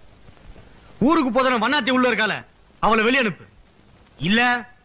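A man speaks loudly and angrily.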